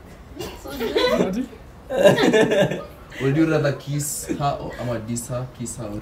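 Young people laugh together nearby.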